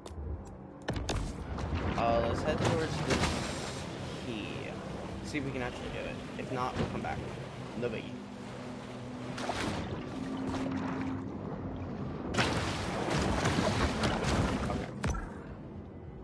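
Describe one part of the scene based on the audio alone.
Water splashes and churns as a fish swims through it.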